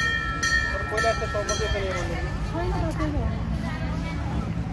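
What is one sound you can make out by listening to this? A woman speaks calmly nearby, outdoors.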